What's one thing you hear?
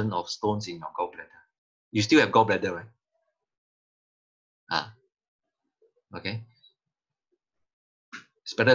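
A man speaks through an online call, in short bursts with pauses.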